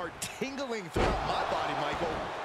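A body slams heavily onto a wrestling mat.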